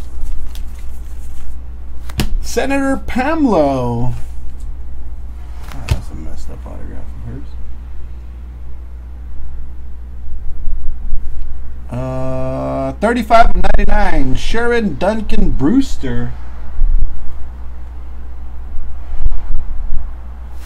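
Trading cards rustle and slide against each other in someone's hands.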